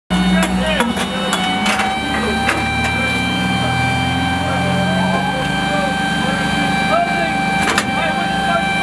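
Metal clanks and knocks.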